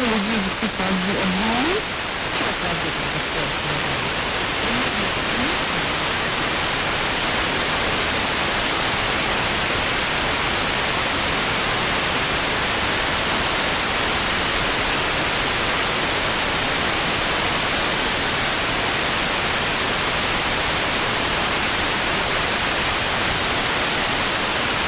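A radio receiver hisses with steady static.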